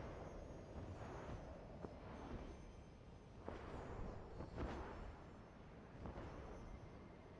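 A figure slides swiftly down a slope with a soft, hissing whoosh.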